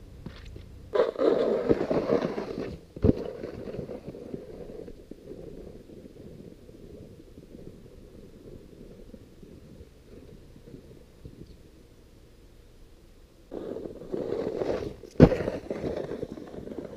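A snowboard scrapes and hisses across packed snow close by.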